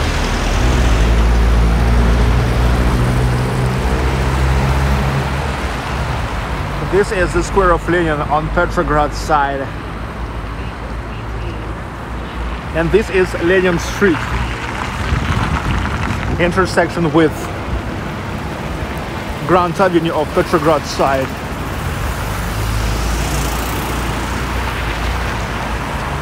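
Traffic rumbles past on a city street outdoors.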